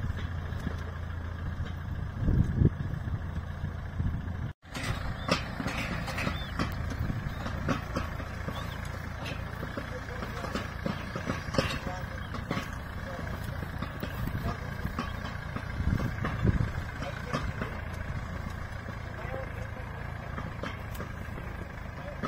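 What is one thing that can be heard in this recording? A tractor engine chugs steadily nearby.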